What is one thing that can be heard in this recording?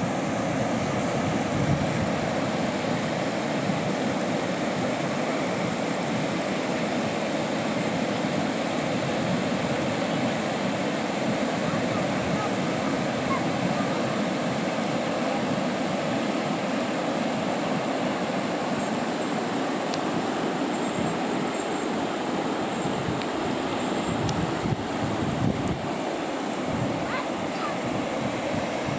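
A river rushes loudly over rapids and rocks.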